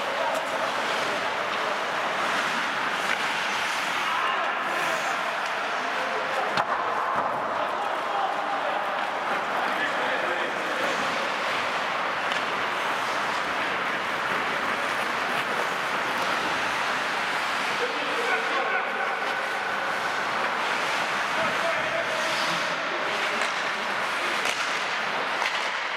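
The noise of the game echoes around a large hall.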